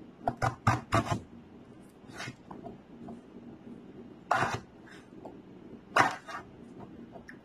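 A knife cuts through firm fruit with sharp thuds and crunches.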